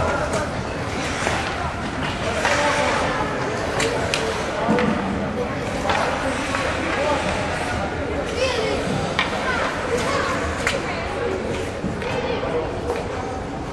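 Young players shout to each other in a large echoing arena.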